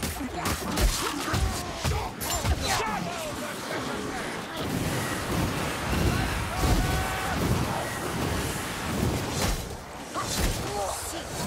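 Blades hack into flesh with wet thuds.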